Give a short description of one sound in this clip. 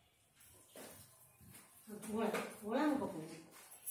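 Grains pour into a pot of liquid.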